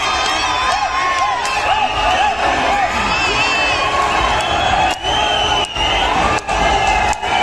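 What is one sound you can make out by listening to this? A large crowd cheers and whistles loudly in a big echoing arena.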